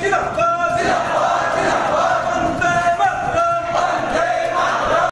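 A crowd of men chants slogans loudly together.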